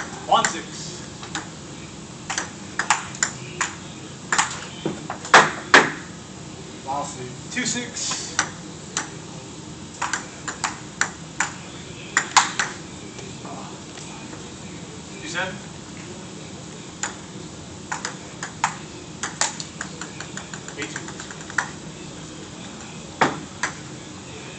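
A ping-pong ball clicks back and forth on a table and paddles.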